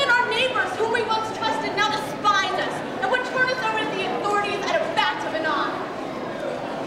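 A young woman sings loudly and dramatically.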